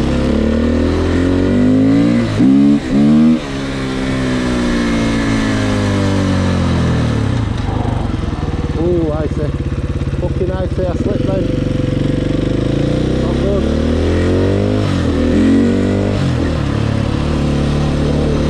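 A motorcycle engine revs up and down loudly close by as it rides.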